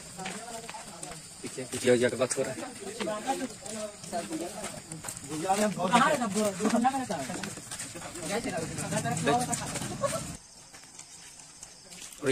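Footsteps scuff on a hard path.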